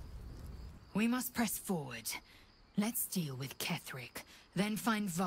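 A woman speaks firmly and with urgency.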